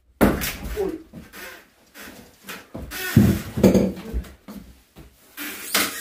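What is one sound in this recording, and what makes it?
A hammer knocks against wooden boards.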